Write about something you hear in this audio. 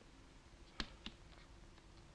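A wooden stick taps on a table.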